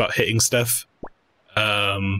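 A short electronic blip sounds as a menu selection changes.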